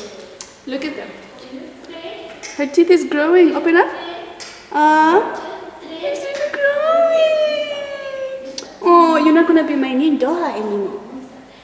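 A young child speaks and laughs loudly close by.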